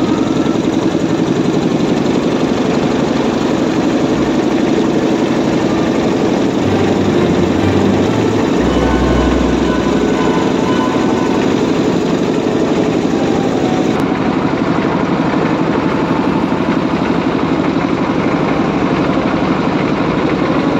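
A boat engine drones steadily up close.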